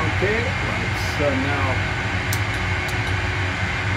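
Switches click sharply.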